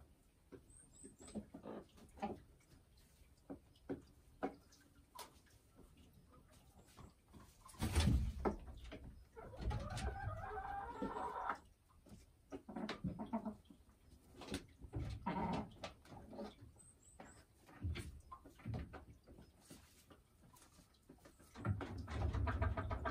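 A hen clucks and croons softly close by.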